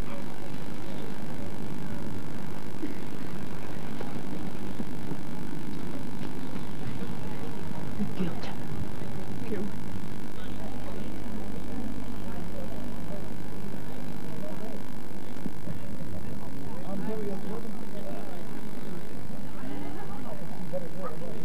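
A crowd of people chatters and murmurs outdoors in the distance.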